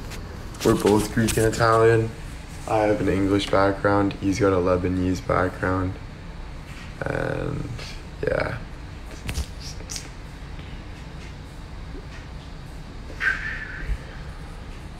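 A young man talks with animation close to a phone microphone.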